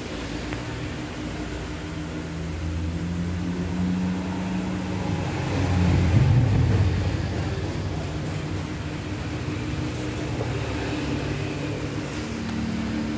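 Metal tools clink softly against the wheel.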